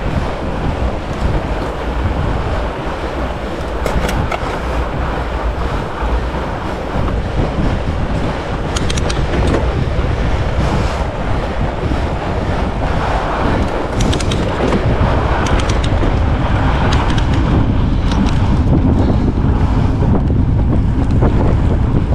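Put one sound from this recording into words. Wind rumbles steadily against a microphone outdoors.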